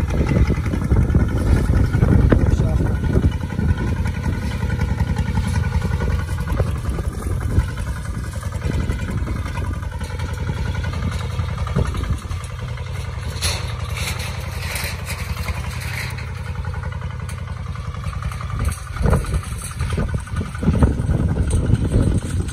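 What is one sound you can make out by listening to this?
A small tractor engine chugs steadily close by.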